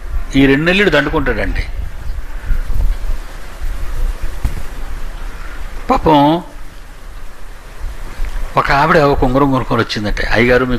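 An elderly man speaks slowly into a microphone, with long pauses.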